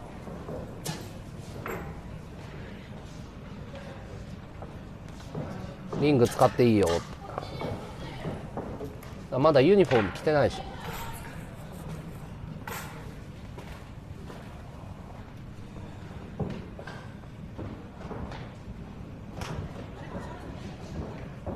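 Bare feet thump and shuffle on a ring's canvas.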